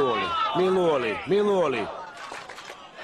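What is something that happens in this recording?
A group of men cheer loudly together.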